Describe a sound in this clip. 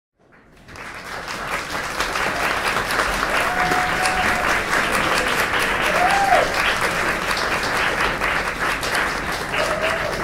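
A crowd claps and whoops.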